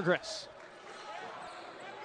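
A basketball thuds as it is dribbled.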